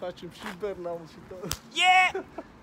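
Two young men slap a high five.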